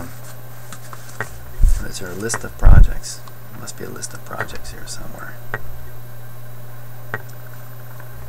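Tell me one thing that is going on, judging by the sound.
Paper rustles as pages of a booklet are turned.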